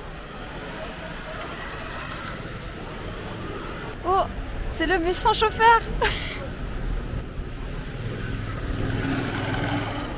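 Traffic hums steadily on a city street.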